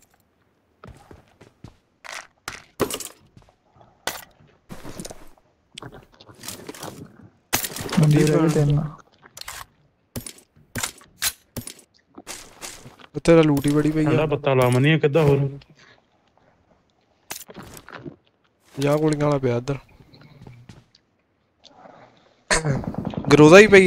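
Short clicks and rustles sound as items are picked up in a video game.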